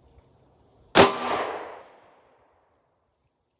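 A handgun fires a single loud shot outdoors, echoing away.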